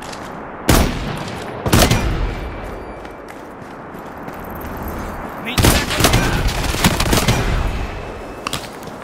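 Rifle shots fire loudly in quick bursts.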